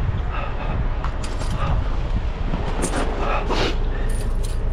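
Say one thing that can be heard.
Metal tyre chains clink and rattle as they are handled.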